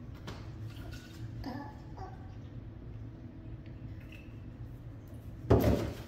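Water pours from a jug into a bottle.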